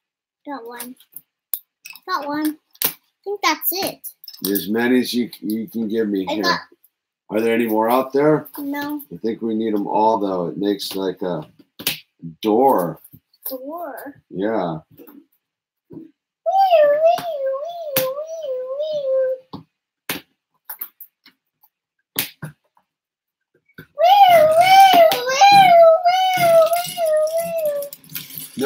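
Plastic toy bricks click and rattle.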